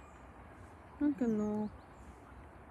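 A narrow-gauge steam locomotive blows its whistle.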